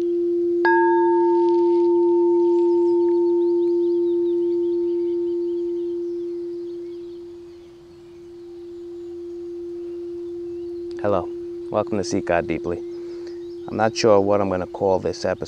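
A singing bowl rings with a steady, humming tone that swells and slowly fades.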